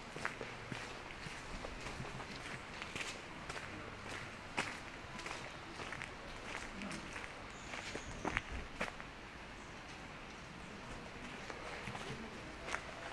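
Footsteps crunch on a gravel path at a walking pace.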